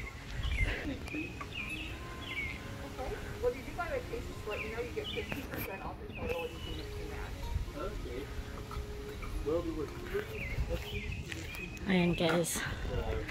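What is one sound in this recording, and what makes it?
A woman talks calmly nearby outdoors.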